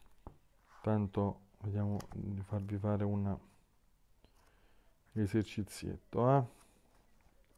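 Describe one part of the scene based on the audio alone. A man speaks calmly and close by, in two short bursts.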